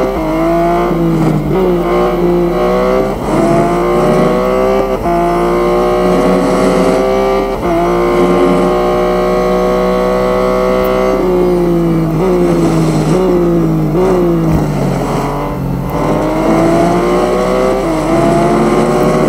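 A racing car engine roars loudly, rising in pitch as it speeds up and dropping sharply at each gear change.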